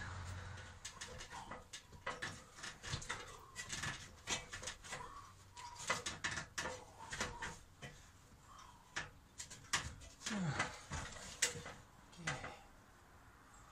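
Footsteps clank on the rungs of a metal ladder.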